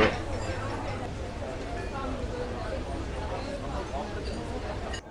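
A crowd murmurs at a distance outdoors.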